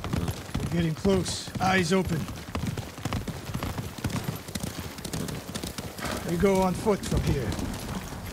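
Horses gallop with heavy, rapid hoofbeats.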